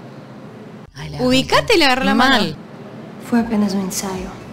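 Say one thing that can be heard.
A young woman answers quietly.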